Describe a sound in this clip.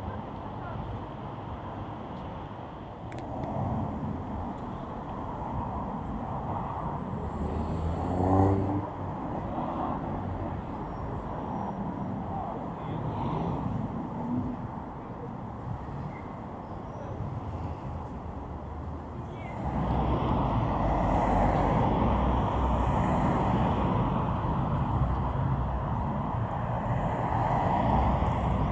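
City traffic hums steadily in the distance, outdoors in a busy street.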